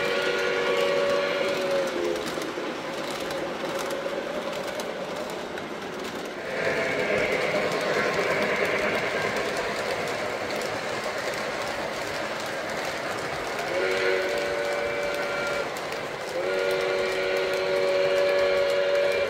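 A model train rolls and clatters along its track.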